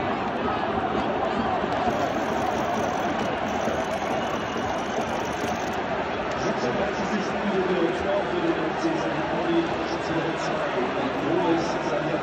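A large stadium crowd chants and sings loudly all around.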